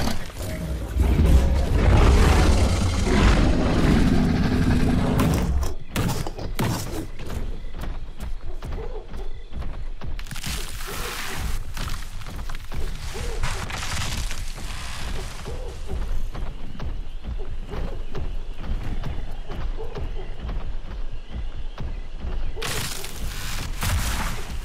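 Heavy footsteps of a large creature thud steadily on the ground.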